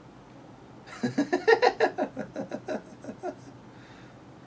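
A young man laughs heartily close to a microphone.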